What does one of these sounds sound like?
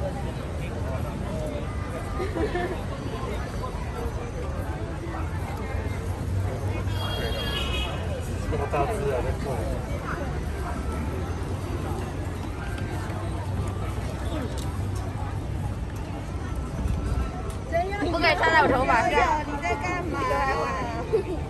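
Children talk nearby outdoors.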